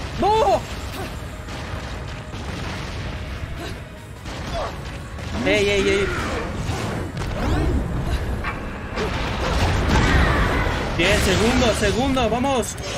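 Fire roars and blasts boom in a battle.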